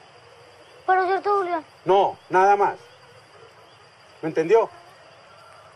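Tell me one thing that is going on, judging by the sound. A middle-aged man speaks sternly, close by.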